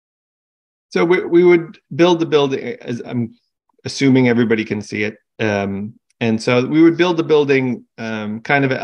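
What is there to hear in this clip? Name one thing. A middle-aged man explains calmly over an online call.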